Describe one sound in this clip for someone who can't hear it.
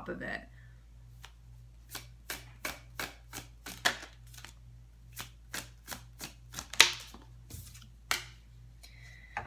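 Playing cards snap and riffle in quick clicks.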